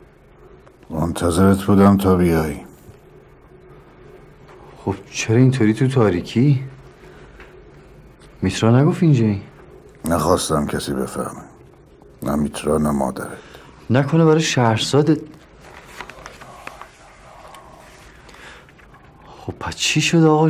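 A young man speaks tensely nearby, in short bursts between pauses.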